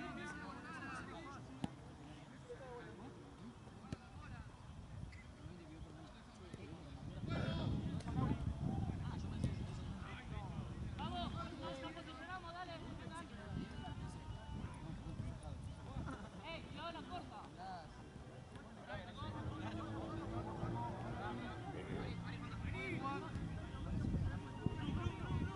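Young men call out and shout to each other across an open outdoor pitch.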